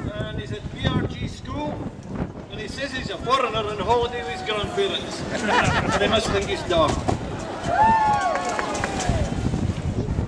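Young men shout and call out excitedly nearby, outdoors by water.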